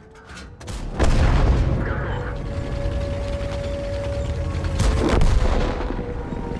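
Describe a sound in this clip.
Shells explode with heavy booms.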